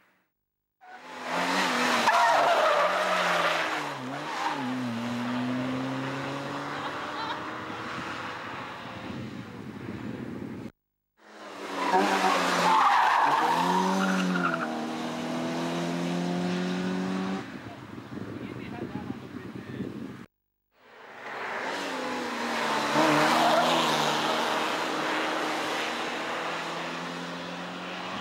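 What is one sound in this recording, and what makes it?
A small car engine revs hard as the car speeds past and fades away.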